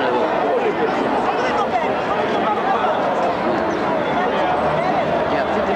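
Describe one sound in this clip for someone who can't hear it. A large crowd of men and women talks and murmurs all around, outdoors.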